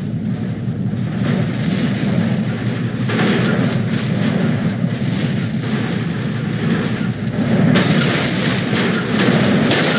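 Metal crunches and scrapes as a heavy truck crushes a car.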